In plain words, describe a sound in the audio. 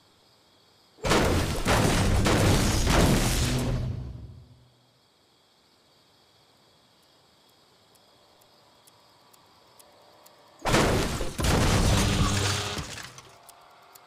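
A pickaxe strikes a metal trailer again and again with loud clanks.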